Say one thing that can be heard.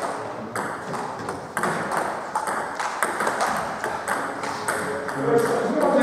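A ping-pong ball clicks back and forth between paddles and the table in an echoing hall.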